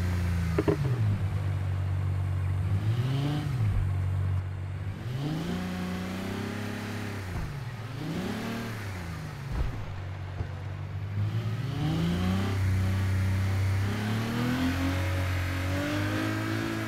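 A sports car engine revs loudly, rising and falling again and again.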